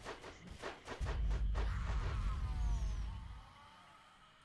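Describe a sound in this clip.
A magic blast booms with a deep rumble.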